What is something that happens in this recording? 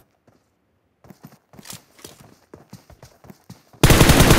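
Footsteps crunch quickly over dirt and grass.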